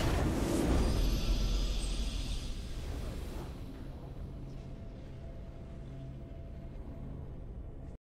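A triumphant victory chime rings out and fades.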